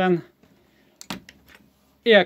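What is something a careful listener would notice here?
A switch clicks as it is pressed.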